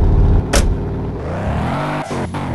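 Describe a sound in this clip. A car engine starts and revs up, rising in pitch.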